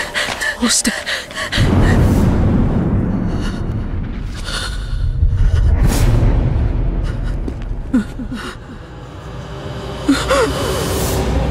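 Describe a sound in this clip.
A young man cries out in alarm.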